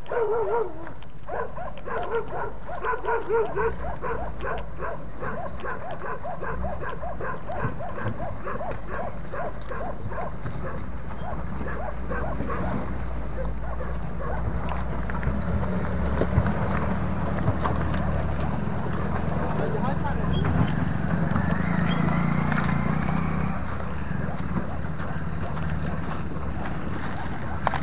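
An off-road vehicle's engine rumbles and revs.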